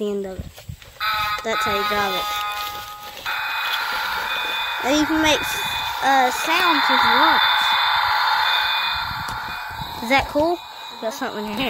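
A toy truck plays electronic sound effects when its buttons are pressed.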